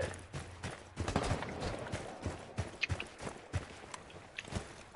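Footsteps thud at a steady pace.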